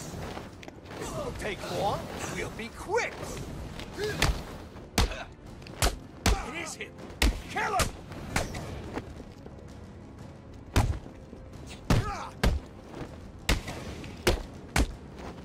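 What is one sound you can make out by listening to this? Heavy punches and kicks land with sharp thuds, over and over.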